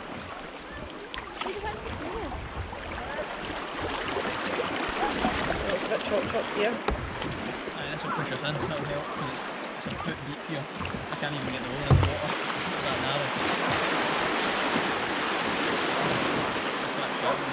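Paddles splash and dip in the water.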